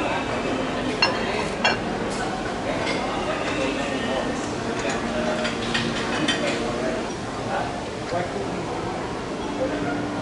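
Men and women chat indistinctly in the background.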